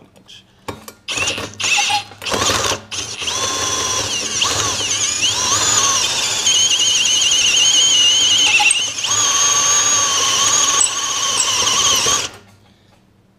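A power drill whines steadily as it bores into metal.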